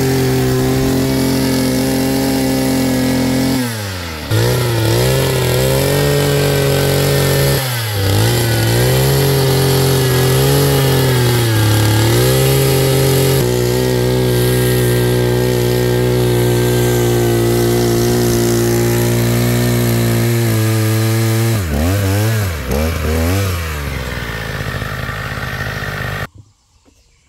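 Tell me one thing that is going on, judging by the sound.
A small petrol engine drones loudly and steadily, its pitch dipping and rising as it works.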